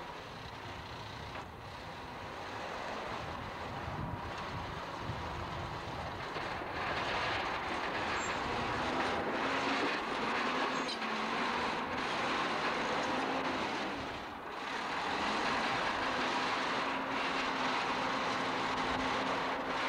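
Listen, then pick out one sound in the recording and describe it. Steel tracks of a bulldozer clank and squeak as it crawls.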